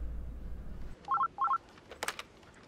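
A desk phone rings twice.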